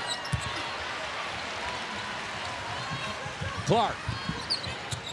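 A basketball thumps as it is dribbled on the court.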